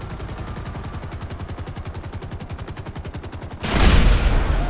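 Helicopter rotor blades chop rapidly and steadily.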